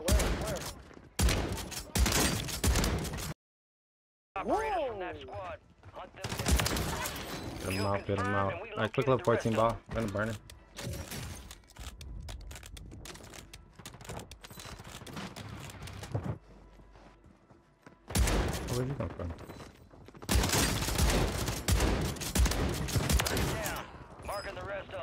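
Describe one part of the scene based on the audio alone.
Shotgun blasts go off in a video game.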